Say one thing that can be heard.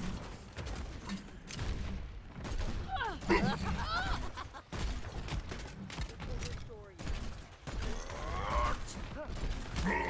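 A grenade launcher fires in quick bursts.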